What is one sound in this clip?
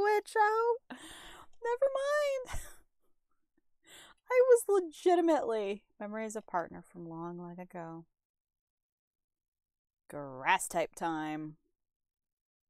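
A woman talks with animation into a microphone.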